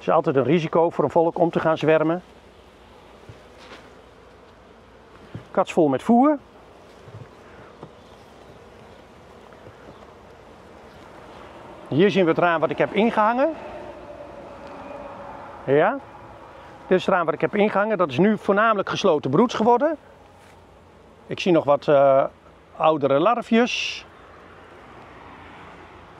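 Bees buzz around an open hive.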